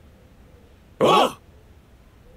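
Several young men shout together in one short cheer.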